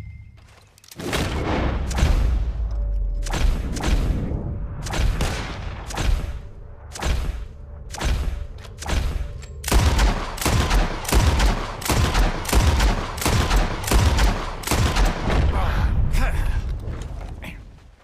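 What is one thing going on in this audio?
Shotguns and pistols fire again and again, loud blasts echoing across open ground.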